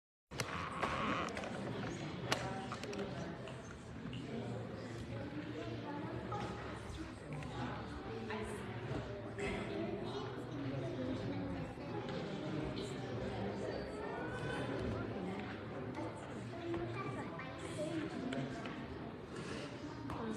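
A woman talks quietly close by.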